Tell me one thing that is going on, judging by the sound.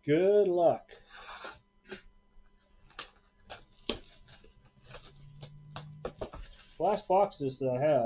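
A cardboard box thuds and taps as it is moved.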